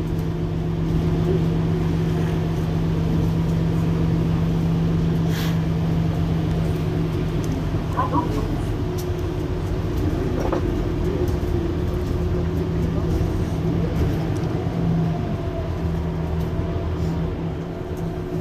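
A diesel hybrid city bus idles at a stop with a steady hum.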